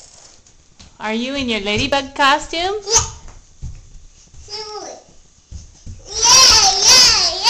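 A little girl talks and squeals excitedly close by.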